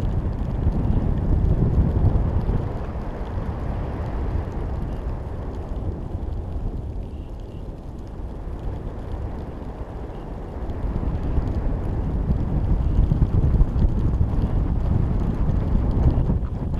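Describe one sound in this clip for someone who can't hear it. Wind buffets and rumbles against a microphone, rising and falling.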